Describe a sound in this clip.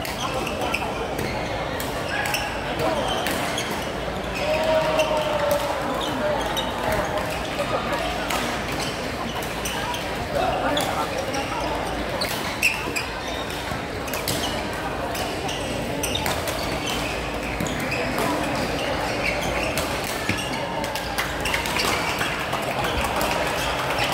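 Shuttlecocks are struck with sharp pops of rackets across a large echoing hall.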